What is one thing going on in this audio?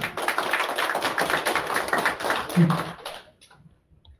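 A small group of people claps.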